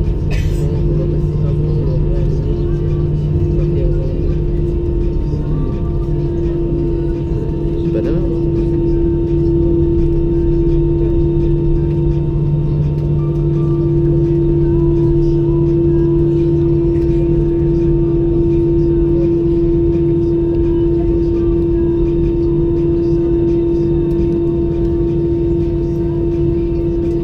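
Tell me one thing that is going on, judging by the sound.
Jet engines hum and whine steadily, heard from inside an aircraft cabin.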